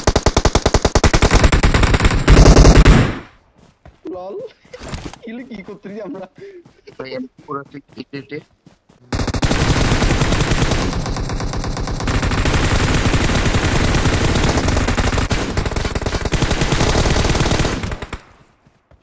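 Rapid bursts of gunfire crackle loudly.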